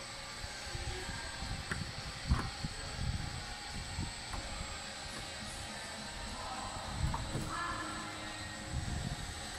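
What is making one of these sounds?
A climber's shoes scuff and knock against plastic holds on a climbing wall.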